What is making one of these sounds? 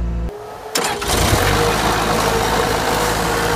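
A diesel engine roars loudly up close, with a harsh hiss.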